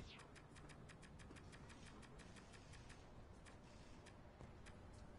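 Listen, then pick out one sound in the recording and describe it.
Soft menu clicks tick in quick succession.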